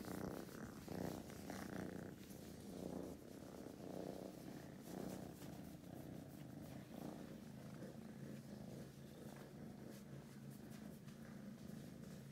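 A hand rubs and strokes a cat's fur close by.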